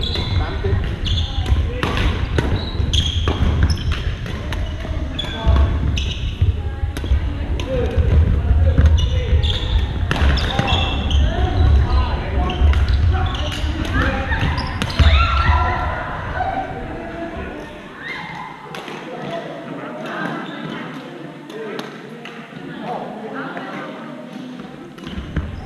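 Rackets strike a shuttlecock again and again in a large echoing hall.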